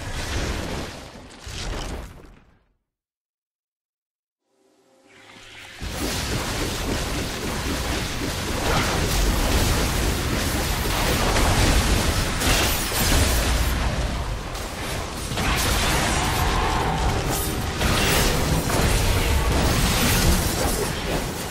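Game spell effects crackle and boom during a battle.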